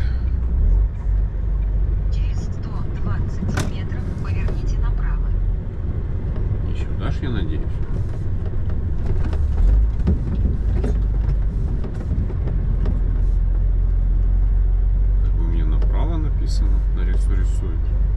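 Footsteps crunch steadily on a rough gravel road.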